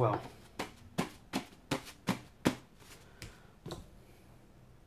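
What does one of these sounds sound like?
Hands tap and knock on a canteen in a quick series of knocks.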